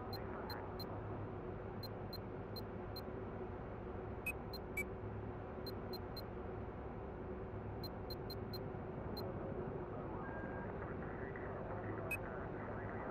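Short soft menu clicks tick repeatedly.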